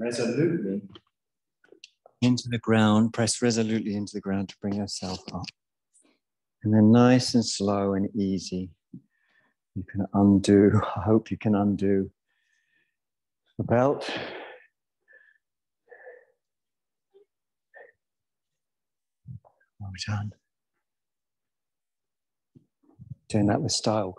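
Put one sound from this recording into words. A man speaks calmly and clearly through a microphone.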